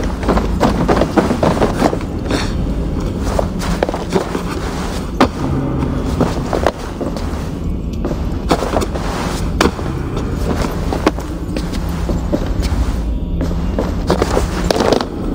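Footsteps thud and creak on wooden boards.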